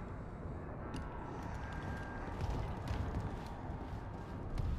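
Heavy boots step on a metal floor.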